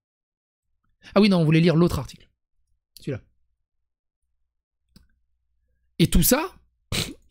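A young man speaks with animation into a close microphone, in short bursts with pauses.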